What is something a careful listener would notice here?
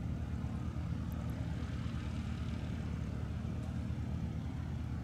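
A small propeller plane's engine drones steadily as the plane taxis nearby.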